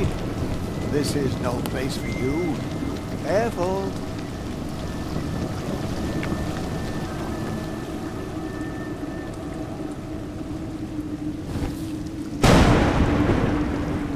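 Heavy rain pours steadily outdoors, growing suddenly louder near the end.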